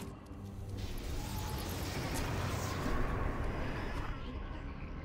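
Flames whoosh and explode with a booming blast.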